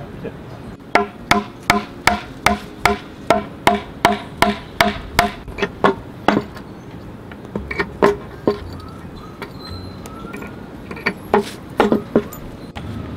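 A hammer strikes wood and nails in quick, steady, ringing blows.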